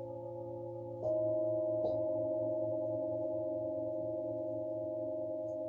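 A singing bowl is struck and rings out brightly.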